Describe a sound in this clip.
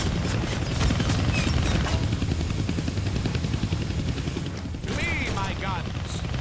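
A helicopter's rotor thumps in a deep, steady rumble.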